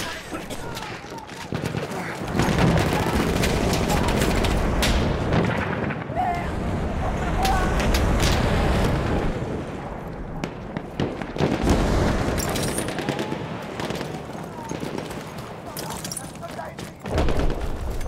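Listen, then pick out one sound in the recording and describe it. Explosions rumble and boom in a battle nearby.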